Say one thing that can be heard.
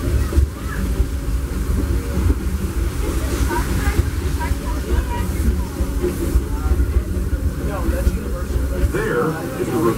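A ride vehicle rumbles along steadily.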